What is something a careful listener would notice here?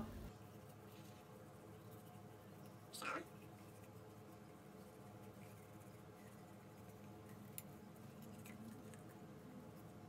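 A toothbrush scrubs against teeth close by.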